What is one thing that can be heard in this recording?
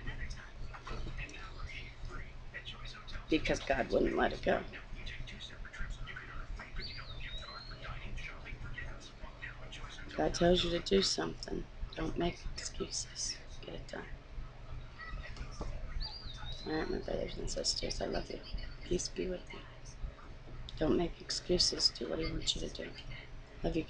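A woman talks casually, close to a microphone.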